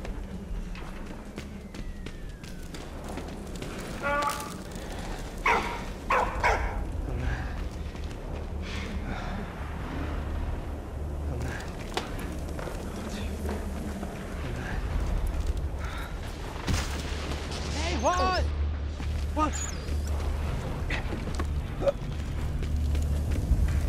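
Heavy footsteps shuffle on a wooden floor.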